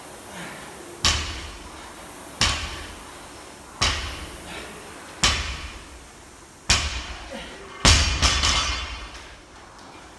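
A barbell loaded with bumper plates thuds onto a rubber floor.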